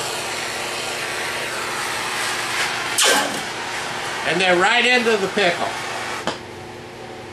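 A gas torch roars steadily, then cuts off.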